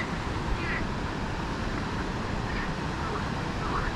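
Water pours steadily over a small weir.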